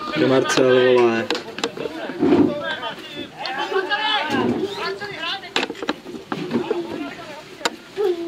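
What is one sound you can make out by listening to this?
Men and women talk and call out nearby.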